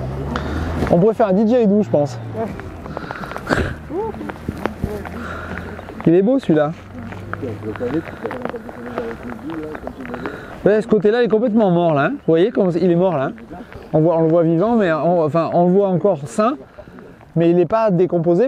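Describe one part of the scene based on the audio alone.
A man speaks calmly and explains close by.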